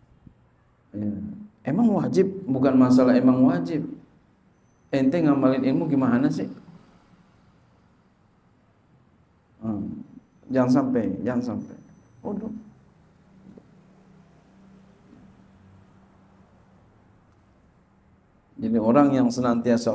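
A middle-aged man speaks calmly into a microphone in bursts with pauses.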